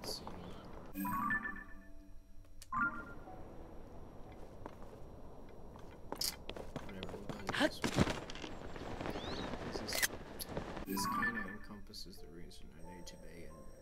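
Soft electronic blips and clicks sound.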